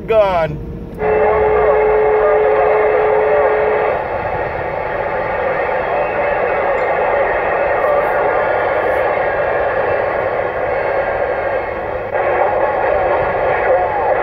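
A CB radio hisses and crackles with static from its speaker.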